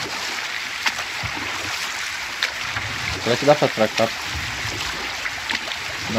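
Oars dip and pull through the water.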